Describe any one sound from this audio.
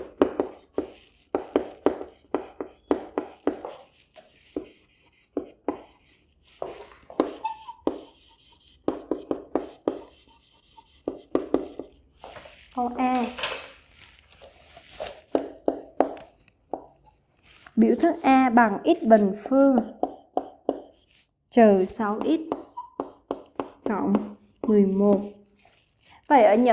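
A young woman speaks calmly and steadily, close to a microphone.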